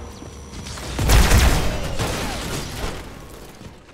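An explosion booms loudly and crackles as it fades.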